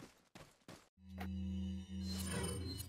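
A low electronic hum sounds as a menu opens.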